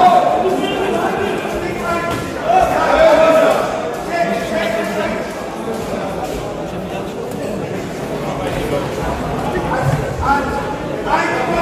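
Spectators shout and call out loudly in an echoing hall.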